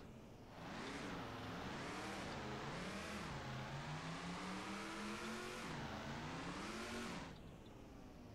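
A truck engine revs and roars.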